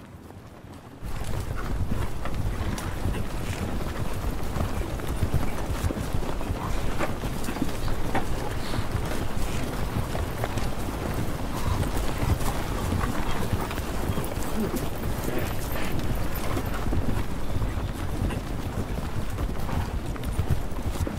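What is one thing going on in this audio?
Many ostriches run, their feet drumming on dry ground.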